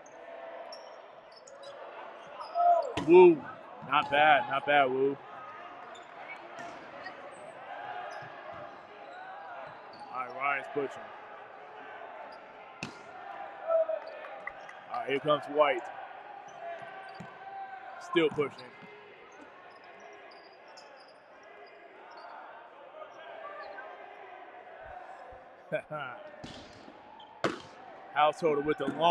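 A ball bounces on a wooden floor.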